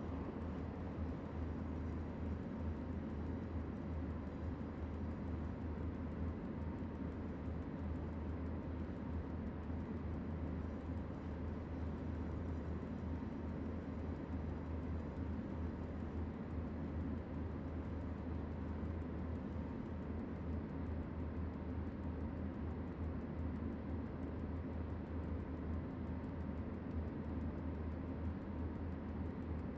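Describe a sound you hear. A locomotive's electric motors hum steadily and low as the train runs along the track.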